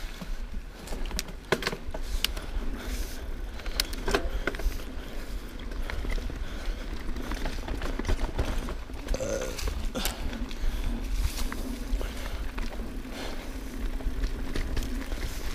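Bicycle tyres roll and crunch over a dirt trail covered in dry leaves.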